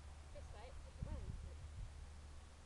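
A young woman speaks calmly outdoors.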